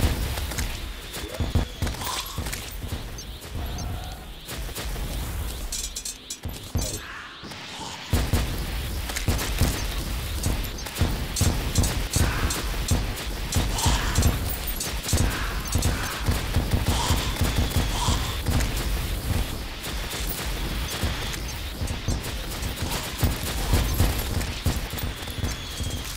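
Rapid game gunfire and explosions pound over and over.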